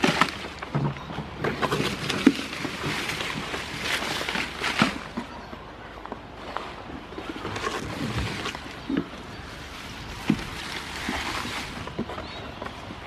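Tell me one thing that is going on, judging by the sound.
Leaves rustle and brush close by.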